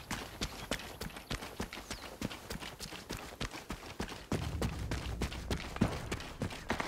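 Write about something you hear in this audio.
Quick footsteps run over dirt and stone.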